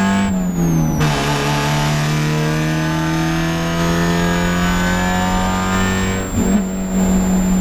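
A four-cylinder Spec Miata race car shifts up a gear.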